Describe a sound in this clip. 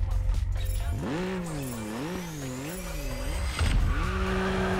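A car engine revs up and down in short bursts.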